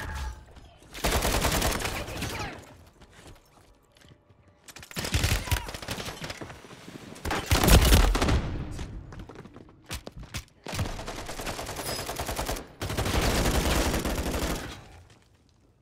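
Gunfire rattles in loud bursts.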